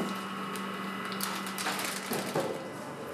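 A packaging machine hums steadily.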